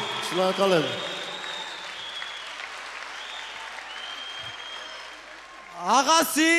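A large audience claps and cheers in a big echoing hall.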